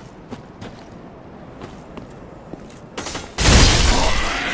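A sword strikes rock with a sharp metallic clang.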